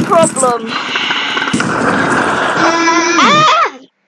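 A bicycle crashes with a loud clatter.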